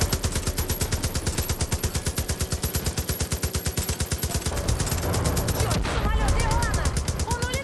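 A heavy machine gun fires in rapid, steady bursts.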